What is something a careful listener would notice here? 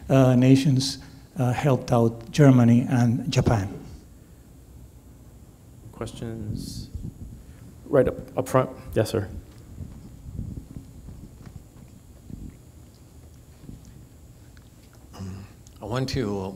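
An elderly man speaks into a microphone in a large room.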